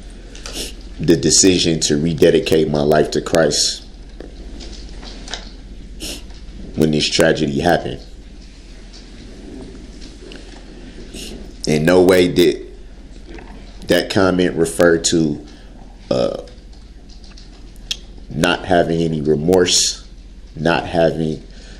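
A man speaks in short bursts with pauses.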